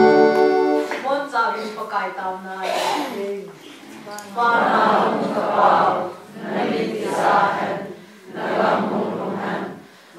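A crowd of men and women pray aloud together.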